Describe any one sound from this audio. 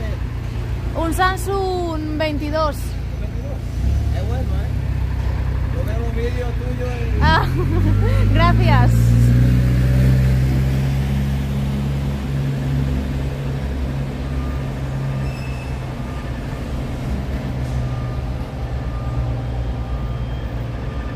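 A machine engine rumbles low and steadily nearby.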